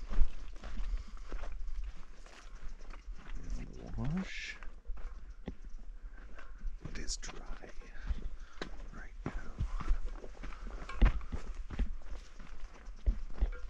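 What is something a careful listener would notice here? Hooves thud steadily on a dirt trail.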